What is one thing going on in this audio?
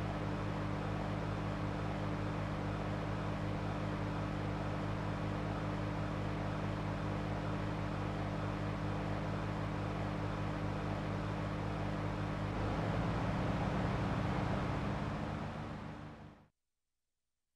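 A car engine hums steadily while driving, then fades out.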